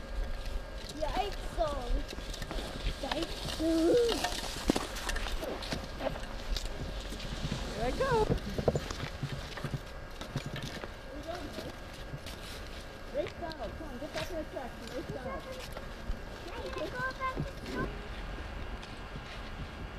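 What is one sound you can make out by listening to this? Skis swish and scrape over snow.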